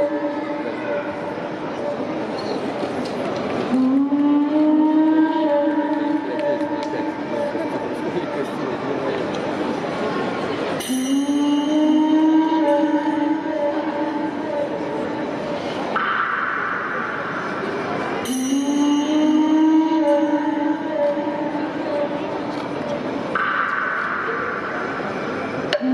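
Music with a sung melody plays loudly over loudspeakers in a large echoing hall.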